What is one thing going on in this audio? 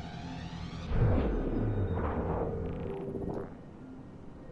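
A loud electronic whoosh swells and fades.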